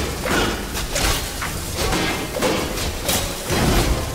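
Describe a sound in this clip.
Weapons clash with sharp, heavy impacts.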